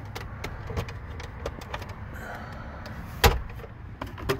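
A plastic console lid clicks open.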